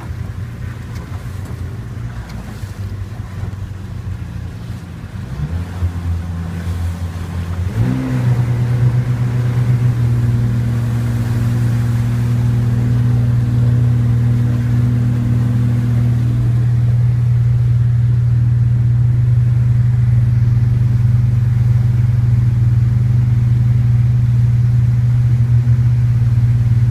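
A boat engine drones and rises in pitch as the boat speeds up.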